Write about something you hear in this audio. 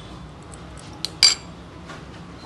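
A metal spoon clinks against a glass bowl.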